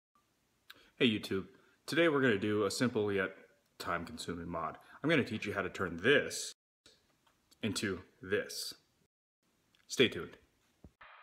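A man talks close up, calmly, in short bursts.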